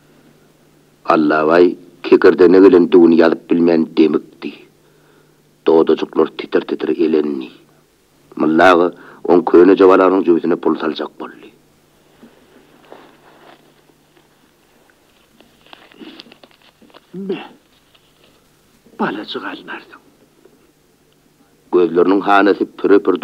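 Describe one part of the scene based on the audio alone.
A plucked lute plays.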